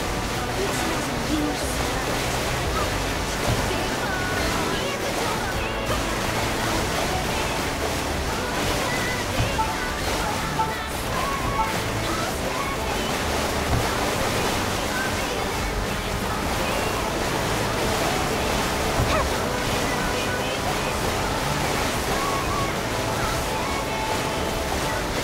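Water sprays and splashes against a jet ski.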